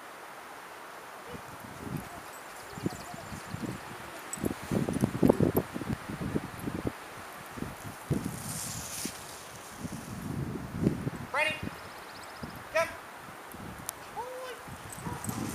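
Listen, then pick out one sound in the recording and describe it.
A man calls out commands to dogs outdoors.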